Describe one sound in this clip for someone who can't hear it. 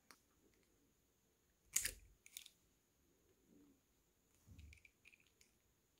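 A screwdriver tip scrapes and clicks against a small plastic ring.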